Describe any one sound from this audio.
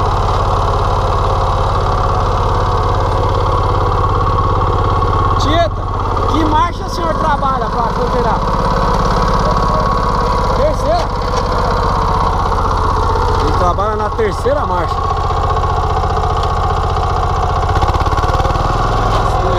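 A small engine runs loudly and steadily close by.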